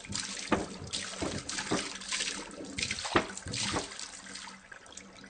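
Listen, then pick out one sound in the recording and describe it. A small waterfall splashes and gurgles.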